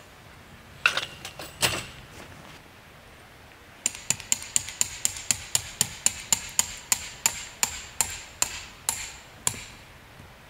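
A hammer knocks sharply in quick, steady blows outdoors.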